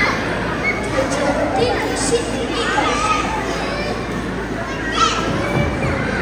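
A young girl speaks into a microphone, heard through loudspeakers in a large hall.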